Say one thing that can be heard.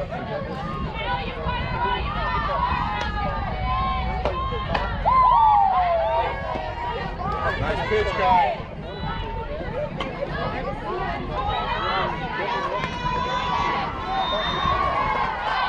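Spectators nearby shout and cheer outdoors.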